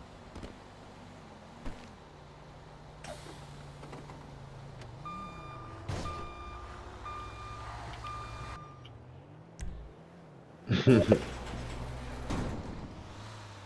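A bus engine rumbles and revs as it drives along.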